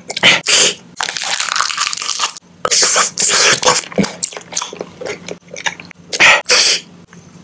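A plastic wrapper crinkles and rustles close up.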